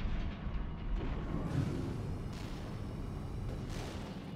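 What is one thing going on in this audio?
A jet thruster roars and guns fire.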